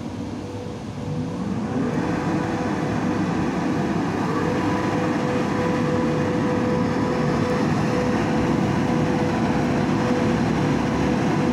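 A train approaches on the tracks with a low, growing rumble.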